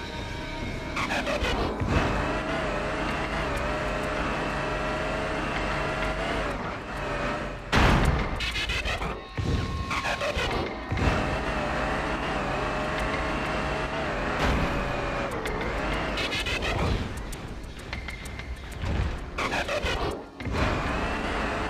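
A robot transforms with quick whirring and clanking mechanical sounds.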